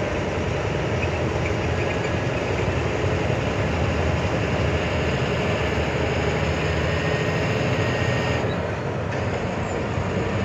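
Tyres roll and rumble steadily on asphalt.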